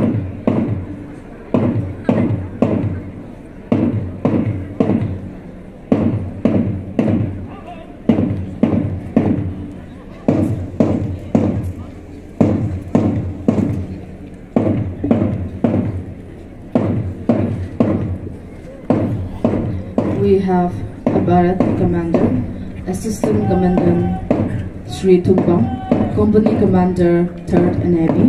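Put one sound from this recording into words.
Marching feet stamp in a steady rhythm.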